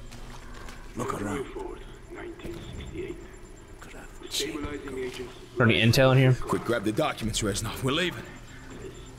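A young man talks with animation, close up through a microphone.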